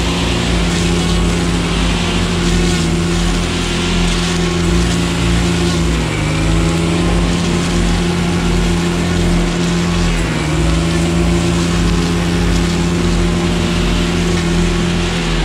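Weeds and brush thrash against the trimmer line.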